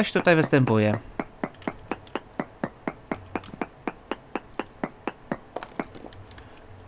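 A pickaxe chips at stone with rapid, even taps.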